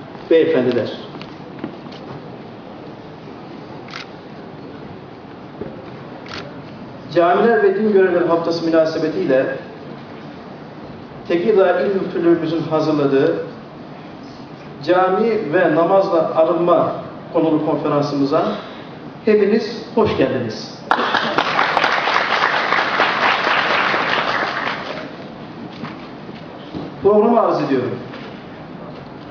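A man speaks slowly and formally through a microphone and loudspeakers in a large echoing hall.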